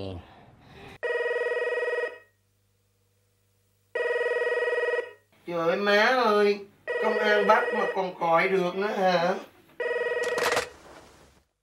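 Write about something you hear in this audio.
A telephone rings in short bursts.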